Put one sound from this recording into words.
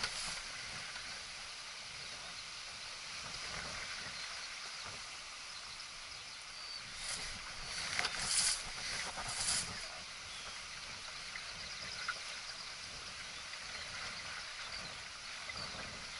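Wind blows steadily across the boat outdoors.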